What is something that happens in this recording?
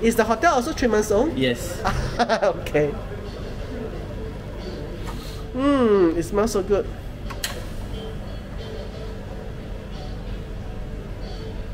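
An espresso machine hums steadily.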